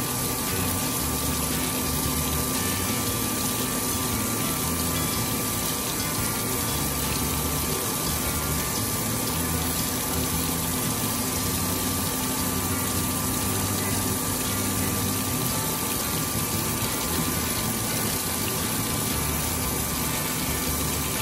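Coolant water sprays and splashes steadily.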